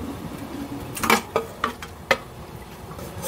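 A metal tray clatters as it is set down.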